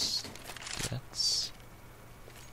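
A rifle is lowered and swapped with a short metallic clatter.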